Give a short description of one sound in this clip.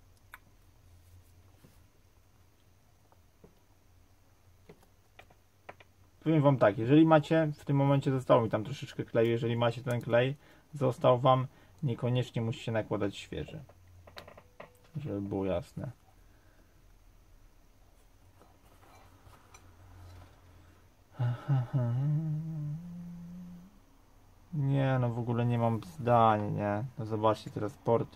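Small plastic phone parts click and tap softly as they are pried and handled.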